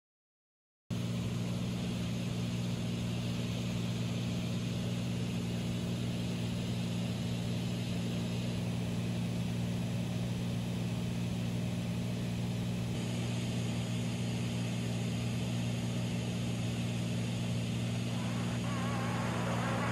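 Wind rushes past the aircraft.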